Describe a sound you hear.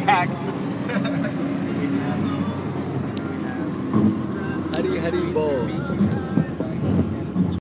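A young man laughs and talks close by.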